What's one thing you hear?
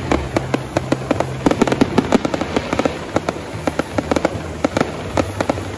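Fireworks crackle and pop rapidly outdoors.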